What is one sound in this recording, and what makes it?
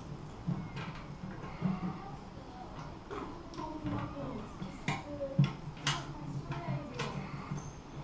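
Small clicks and knocks sound as tubing is pressed into a clip.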